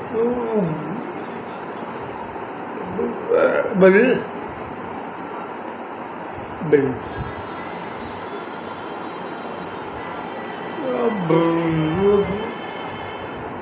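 A middle-aged man talks with animation close by, in short bursts.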